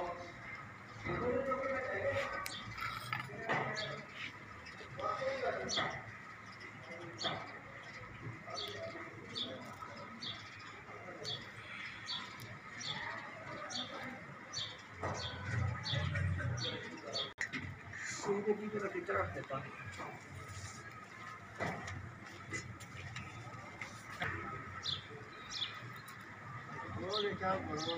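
Small metal parts click and rattle as they are handled close by.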